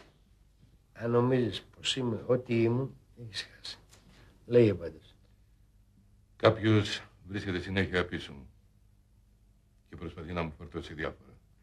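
A middle-aged man speaks in a low, serious voice, close by.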